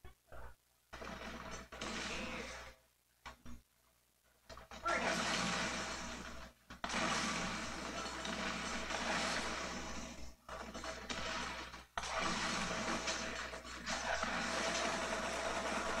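Gunfire and explosions crackle loudly.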